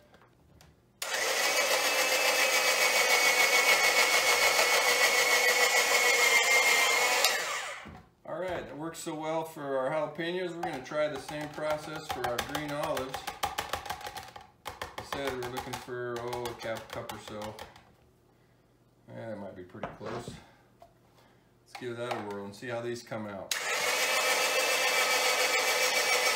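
An electric food chopper whirs loudly as it shreds vegetables.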